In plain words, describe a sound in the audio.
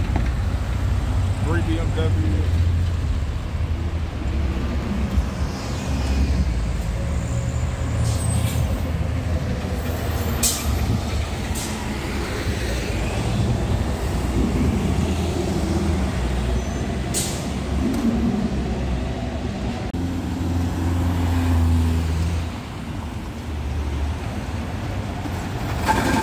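Car engines hum as traffic passes on a city street.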